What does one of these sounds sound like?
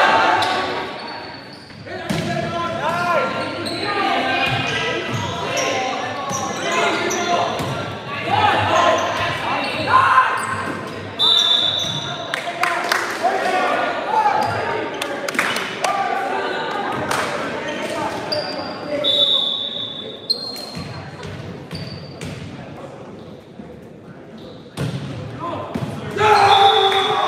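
Players shout and call out to each other in a large echoing gym.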